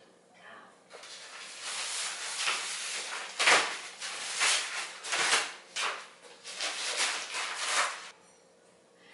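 Wooden bed frame parts clatter and scrape as they are moved.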